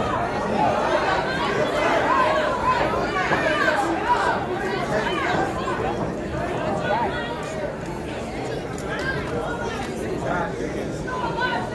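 A crowd of spectators chatters and shouts loudly in a large echoing hall.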